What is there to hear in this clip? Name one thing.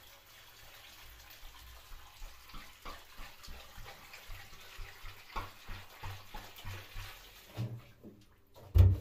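A plastic sieve rattles and taps in quick, steady shakes.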